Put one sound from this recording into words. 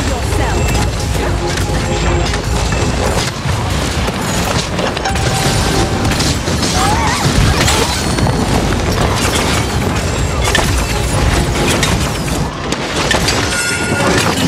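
Video game weapons fire and energy blasts crackle rapidly.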